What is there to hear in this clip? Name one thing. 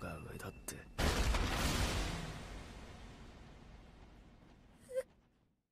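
A giant creature's jaws crunch down with a heavy impact.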